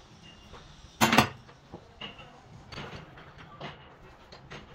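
A heavy cast-iron housing clanks against a lathe chuck.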